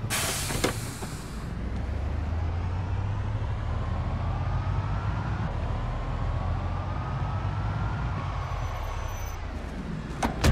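A truck engine rumbles low and steady as it drives.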